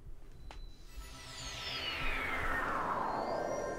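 A shimmering magical whoosh sweeps downward.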